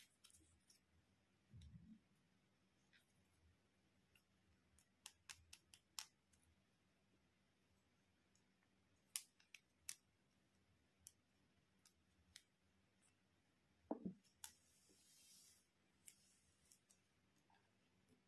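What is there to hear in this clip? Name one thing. Plastic toy pieces click and clatter as hands handle them.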